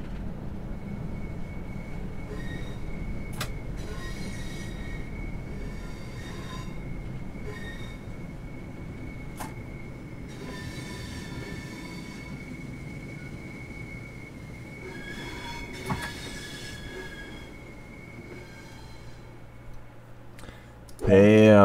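A train rumbles along the track and slows to a stop.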